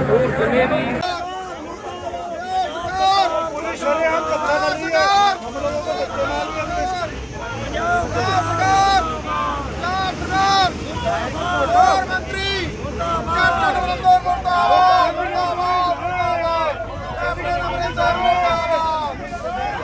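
A group of men chant slogans together.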